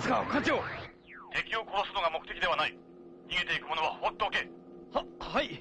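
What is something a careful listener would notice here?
A man speaks firmly over a radio.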